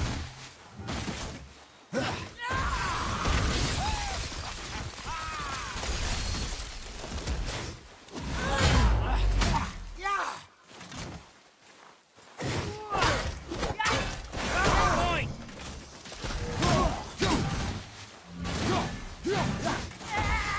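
A heavy axe swings and strikes with sharp thuds.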